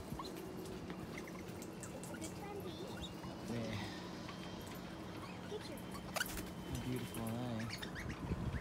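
Birds chirp and squawk in the trees nearby.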